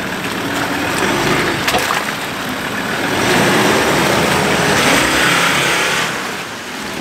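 An off-road vehicle's engine roars as it passes close by.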